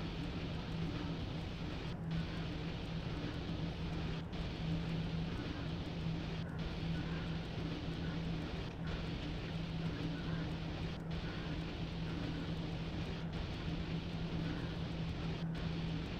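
A train engine hums steadily.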